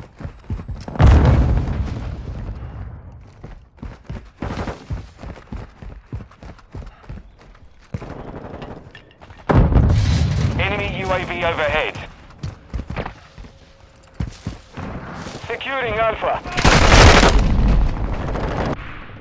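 Gunfire rings out in loud bursts.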